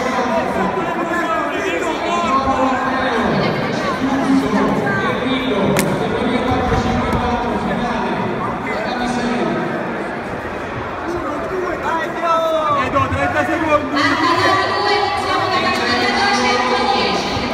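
A crowd of spectators talks and shouts in a large echoing hall.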